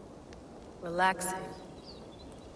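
A young woman speaks briefly and calmly.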